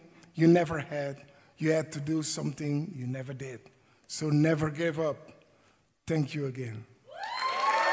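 An elderly man speaks calmly into a microphone in a large hall.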